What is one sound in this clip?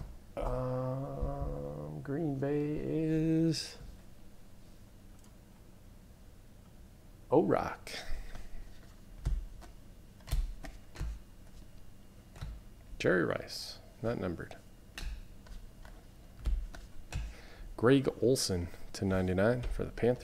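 Trading cards rustle and flick as hands shuffle through a stack.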